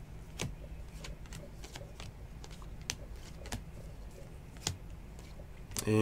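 Trading cards rustle and click as hands handle them.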